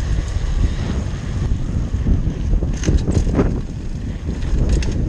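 Bicycle tyres roll and rattle over paving.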